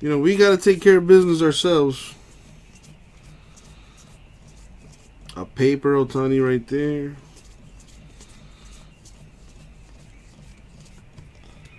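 Trading cards rustle and slide against each other as they are flipped by hand.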